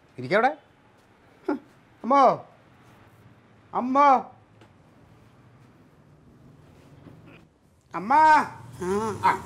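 A man speaks in short, loud, emphatic bursts close by.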